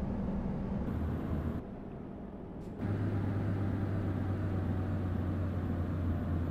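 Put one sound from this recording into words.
A truck engine drones low and steady, dropping briefly before swelling again.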